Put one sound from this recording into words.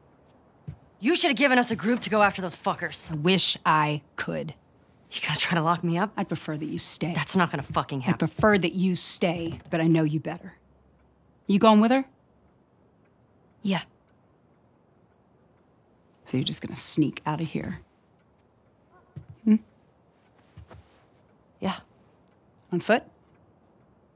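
A young woman speaks angrily and with rising frustration, close by.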